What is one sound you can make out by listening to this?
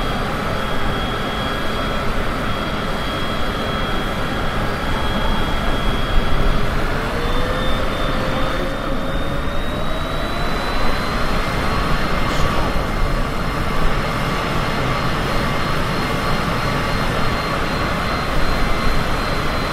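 Jet engines roar steadily with a rising whine.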